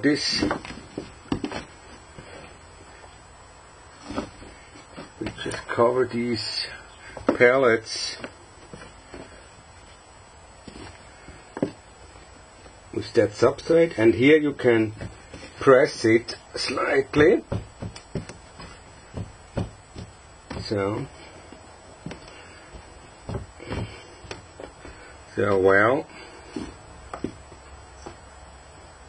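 Hands rustle and pat loose soil.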